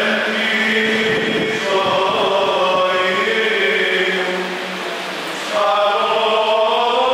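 Men chant together in a melodic, sustained way through a microphone in an echoing room.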